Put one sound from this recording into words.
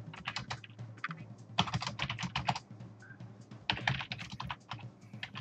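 Upbeat game music plays with quick, snappy percussion.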